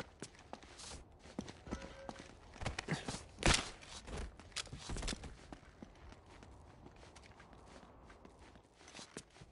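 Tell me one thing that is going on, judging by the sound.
Footsteps crunch on rubble and debris.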